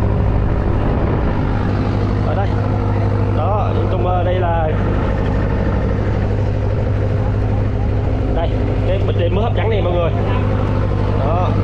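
Water rushes and splashes along a moving boat's hull.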